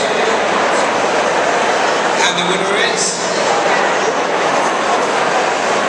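A woman speaks into a microphone, heard through loudspeakers in a large echoing hall.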